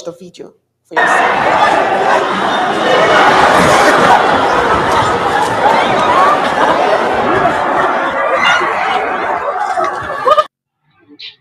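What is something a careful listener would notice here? A crowd shouts and screams outdoors.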